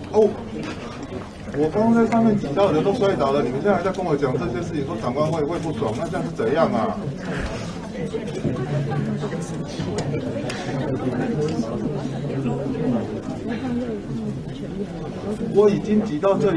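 A mixed crowd of young adults talks and murmurs nearby.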